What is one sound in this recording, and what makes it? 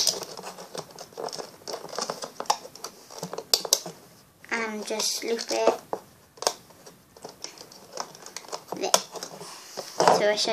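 Crinkly plastic crackles and rustles as fingers squeeze it.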